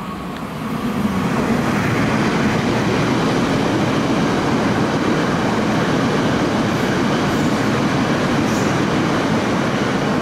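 A train rushes past close by with a loud, steady roar and clatter of wheels.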